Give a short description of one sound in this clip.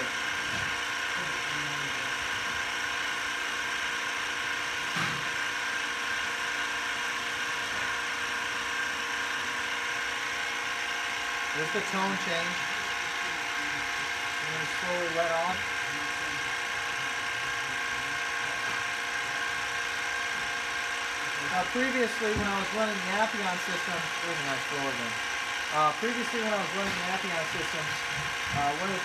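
A vacuum pump hums steadily.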